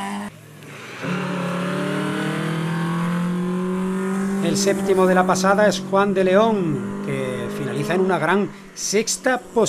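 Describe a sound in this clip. A rally car engine roars and revs hard through tight bends.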